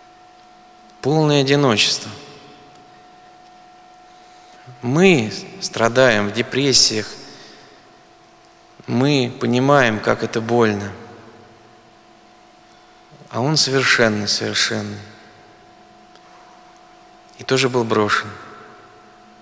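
A middle-aged man speaks in short, slow phrases into a microphone, with pauses between them, in an echoing hall.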